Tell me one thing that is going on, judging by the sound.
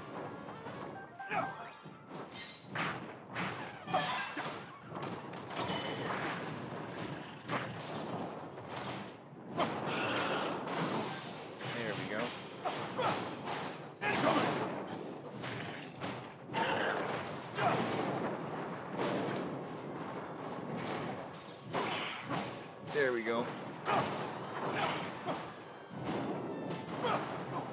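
Weapons clash and strike again and again in a fierce fight.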